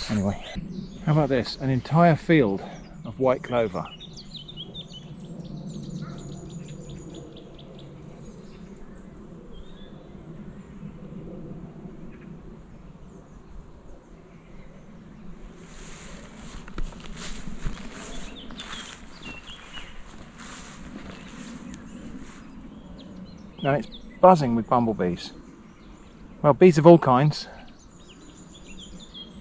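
Footsteps swish through long grass.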